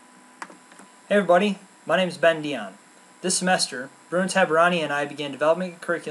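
A young man speaks calmly and close up, as if through a computer microphone.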